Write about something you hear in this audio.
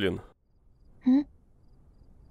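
A young woman speaks gently and close by.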